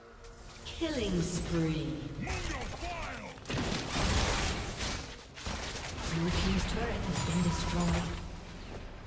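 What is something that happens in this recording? Fighting sound effects from a video game crackle and clash in bursts.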